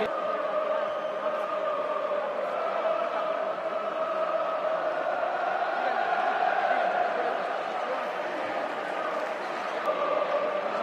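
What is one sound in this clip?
A large stadium crowd chants and sings loudly in unison outdoors.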